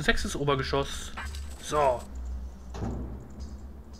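A heavy door unlocks and slides open.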